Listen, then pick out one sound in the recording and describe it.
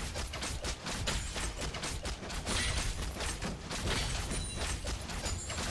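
Game spell effects crackle and burst in a fast fight.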